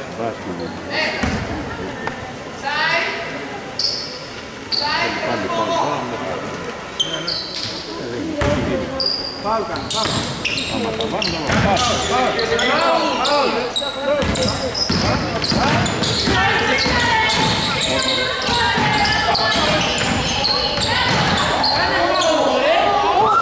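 Players call out loudly to each other across the court.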